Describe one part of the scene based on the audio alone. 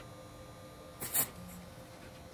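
A steel bar clinks against a steel table.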